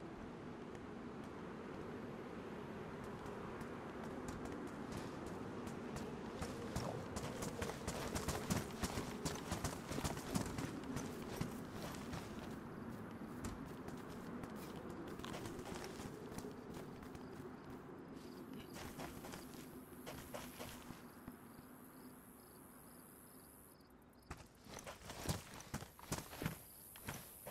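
Footsteps crunch over dry grass.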